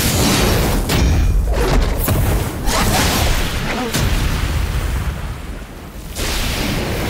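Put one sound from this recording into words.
Flames roar and whoosh.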